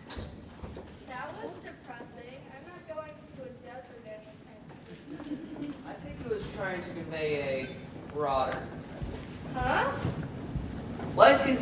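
A young man speaks with animation on a stage, in a large hall.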